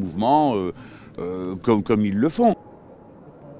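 An elderly man speaks firmly into microphones outdoors.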